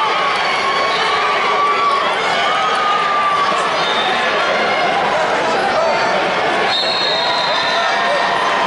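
A large crowd murmurs and calls out in a big echoing arena.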